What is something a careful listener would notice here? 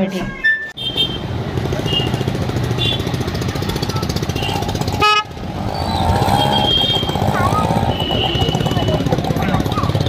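Vehicle horns honk repeatedly.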